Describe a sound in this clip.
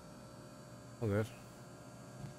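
A man briefly exclaims close to a microphone.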